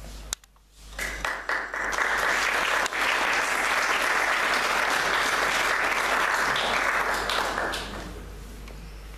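A crowd applauds loudly in an echoing hall, then the clapping dies away.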